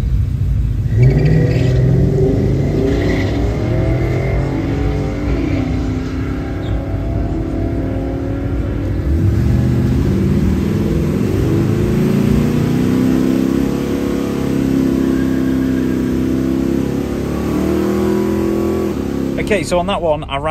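A car engine roars and revs as it accelerates away.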